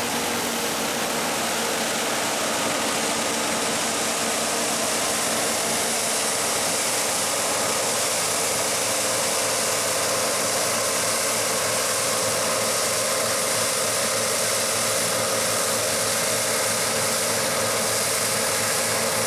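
A combine harvester threshes crop with a loud rushing hiss.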